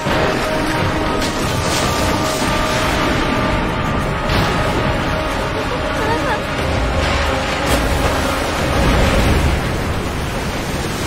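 A large wooden structure collapses with a loud rumbling crash.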